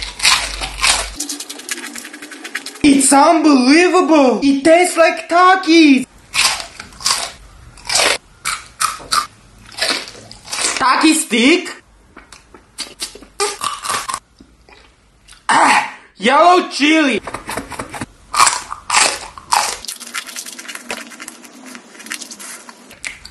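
A young man chews and slurps wet food noisily close by.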